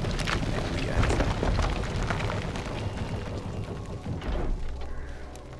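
Heavy stone doors grind open.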